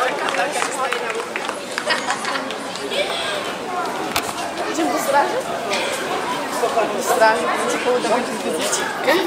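Several men and women chat and talk over one another nearby.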